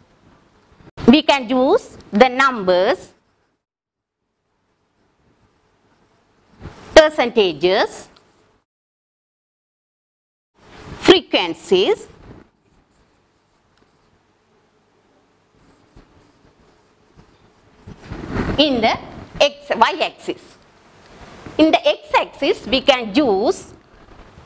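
A woman speaks clearly into a microphone in short phrases, like a teacher explaining.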